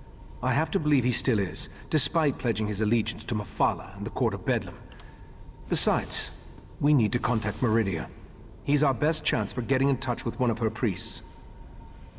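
A man speaks calmly and clearly in a deep voice, close up.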